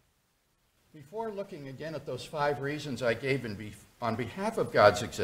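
A middle-aged man speaks clearly into a microphone.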